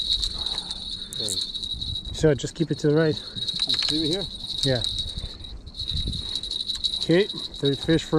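A fishing reel clicks as its handle is turned.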